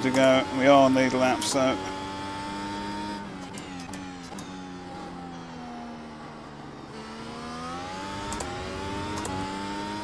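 A racing car engine whines steadily, dropping in pitch as it slows and then rising again.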